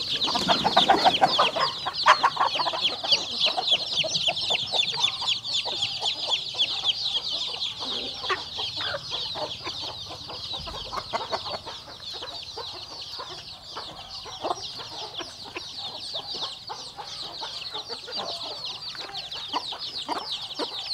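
Chickens cluck and squawk.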